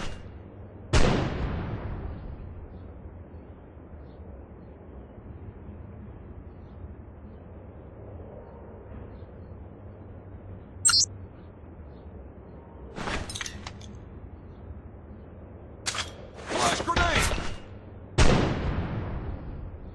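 A stun grenade goes off with a sharp bang that rings away.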